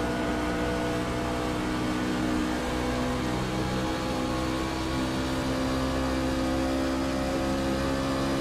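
A V8 racing pickup truck engine roars at full throttle, heard from inside the cockpit.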